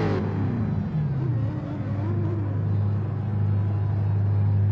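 A race car engine idles with a steady low rumble.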